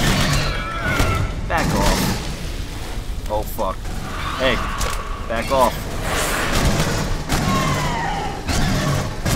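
A creature shrieks and hisses repeatedly.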